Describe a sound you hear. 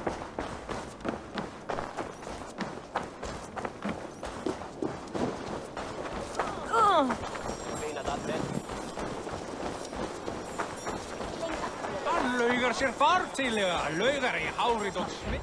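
Footsteps crunch quickly over snow and wooden boards.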